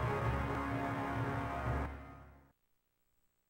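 Low, droning music plays and fades out.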